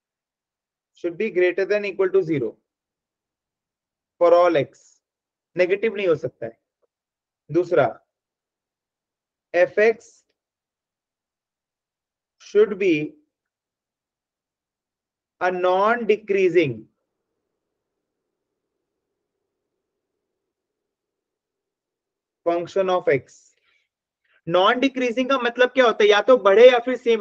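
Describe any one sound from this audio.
A man speaks calmly in short phrases, heard through a microphone on an online call.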